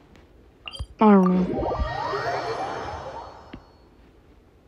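A bright, shimmering chime rings out and slowly fades.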